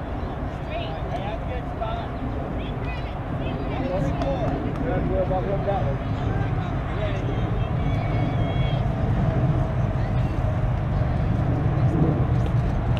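Voices of young players and onlookers call out across an open field.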